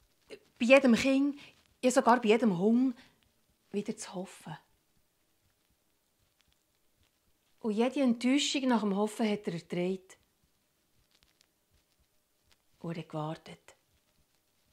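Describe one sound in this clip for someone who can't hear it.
A woman speaks expressively and close to a microphone, with pauses.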